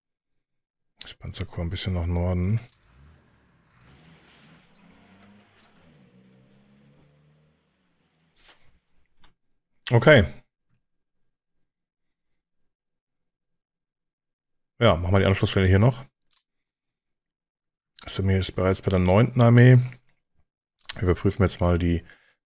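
A man talks calmly and closely into a microphone, in short bursts with pauses.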